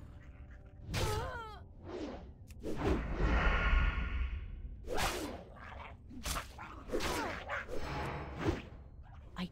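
Game creatures grunt and cry out in combat.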